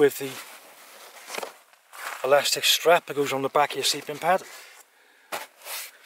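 Nylon fabric rustles and crinkles close by as hands handle it.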